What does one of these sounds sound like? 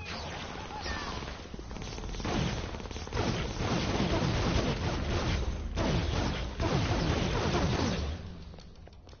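Energy blasts crackle and roar in bursts.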